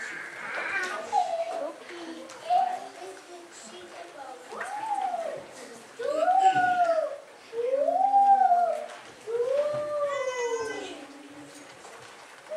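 A group of children sings together in an echoing hall.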